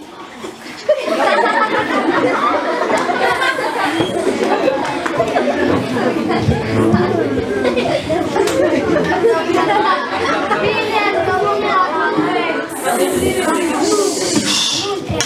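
A group of children talk and chatter nearby.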